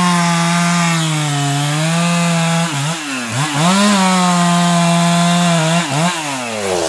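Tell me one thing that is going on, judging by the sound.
A chainsaw cuts into wood.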